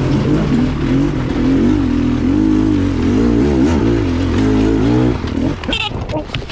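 A motorcycle engine roars loudly over rough ground.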